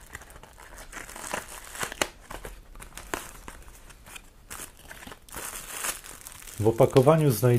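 Paper and plastic packaging rustles and crinkles as it is opened.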